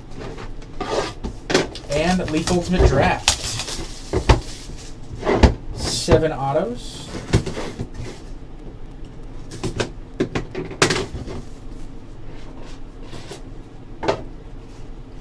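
A card box is tapped and set down on a table.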